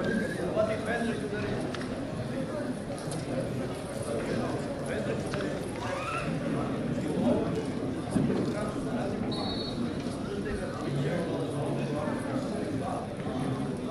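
A small crowd of spectators chatters and calls out nearby.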